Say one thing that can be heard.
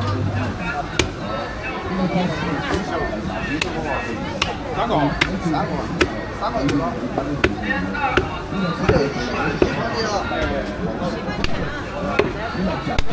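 A cleaver chops sharply into a wooden block again and again.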